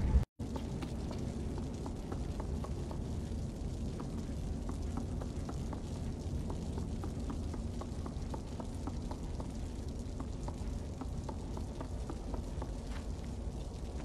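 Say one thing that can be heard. Light footsteps patter across wooden floorboards.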